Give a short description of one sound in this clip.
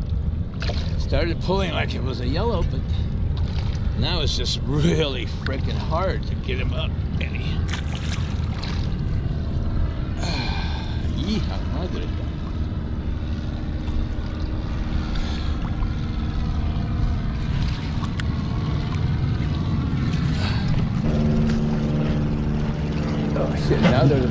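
Water laps against the board.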